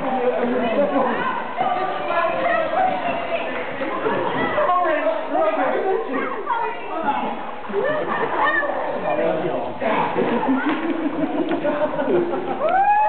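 A crowd of people chatter and shout in a large echoing hall.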